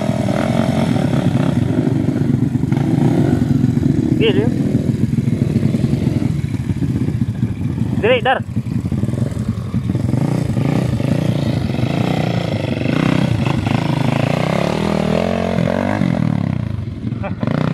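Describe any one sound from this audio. Dirt bike engines rev and sputter nearby.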